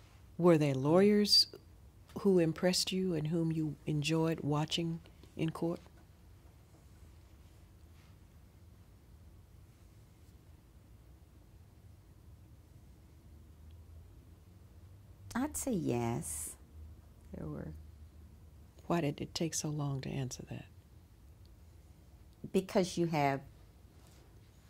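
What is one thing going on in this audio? An older woman speaks calmly and close, in short bursts with pauses.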